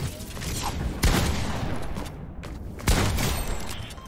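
Loud gunshots blast, each with a short ringing tail.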